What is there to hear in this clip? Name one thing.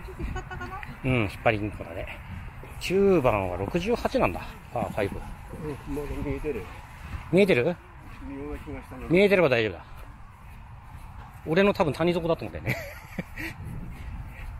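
A man talks casually close by, outdoors.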